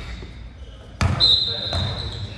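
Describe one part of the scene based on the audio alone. A basketball clanks against the rim.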